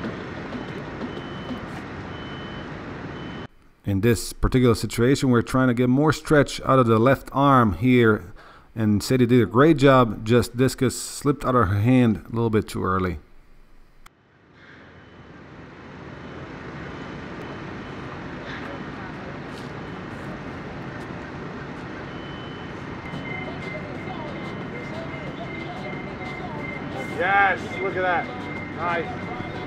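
Shoes scuff and pivot on concrete.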